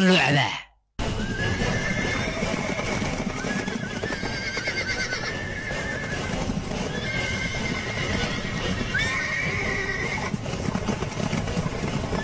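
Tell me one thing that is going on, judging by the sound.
Horses gallop across open ground.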